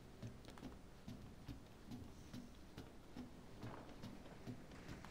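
Footsteps thud steadily on wooden floorboards.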